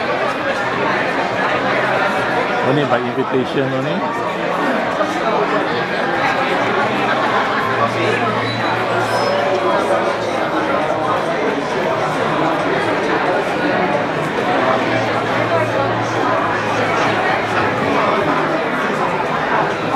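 A crowd of people chatters all around in a large indoor hall.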